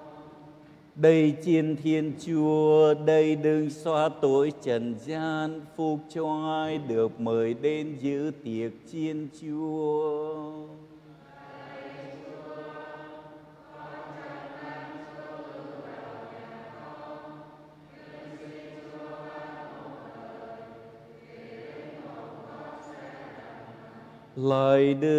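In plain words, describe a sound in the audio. A middle-aged man chants through a microphone in a large echoing room.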